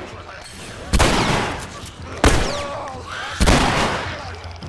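Gunshots ring out sharply.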